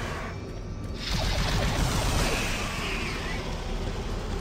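A weapon fires buzzing energy shots.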